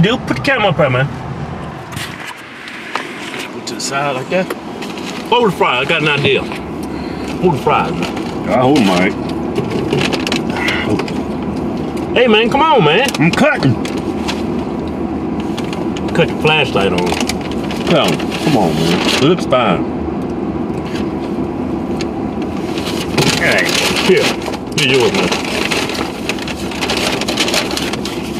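A second man talks and laughs close by.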